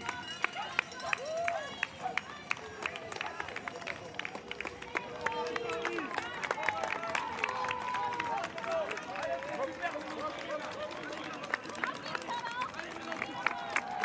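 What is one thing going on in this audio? A crowd of spectators cheers and shouts along the roadside.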